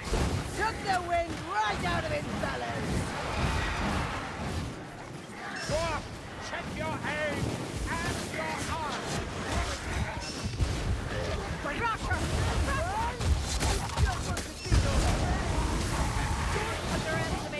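Fire bursts in loud, roaring blasts.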